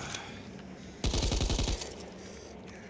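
A machine gun fires a rapid burst.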